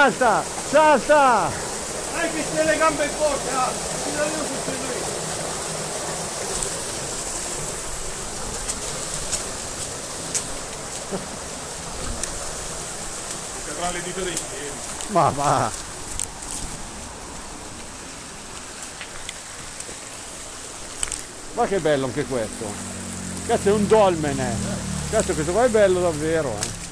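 Water rushes and splashes over rocks.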